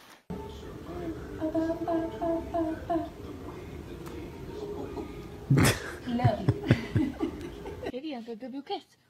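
A woman talks softly and playfully to a baby up close.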